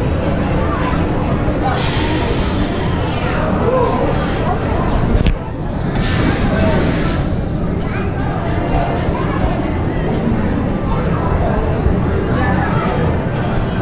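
Wind rushes past a moving roller coaster.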